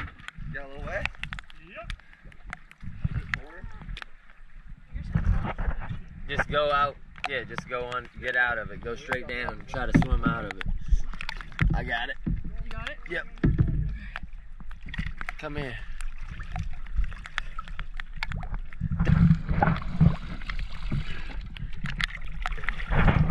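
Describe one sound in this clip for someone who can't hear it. Water splashes and laps against a boat hull.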